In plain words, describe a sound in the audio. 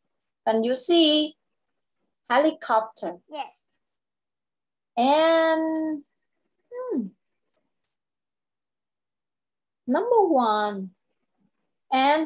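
A young girl speaks clearly over an online call, in short bursts with pauses.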